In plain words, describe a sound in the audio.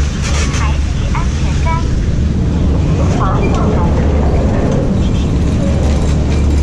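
A chairlift's machinery rumbles and whirs steadily nearby.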